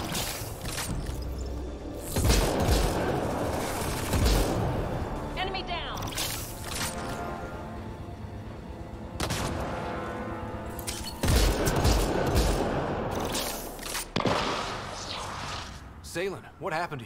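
Laser gunfire and loud blasts crack and boom in bursts.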